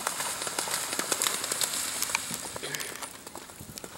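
A horse splashes through shallow water at a canter.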